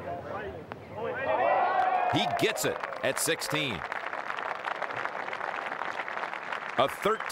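A crowd cheers and applauds loudly outdoors.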